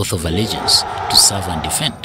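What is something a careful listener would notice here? Many boots stamp in unison as troops march.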